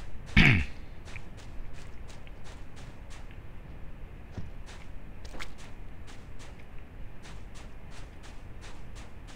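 Footsteps crunch quickly on sand.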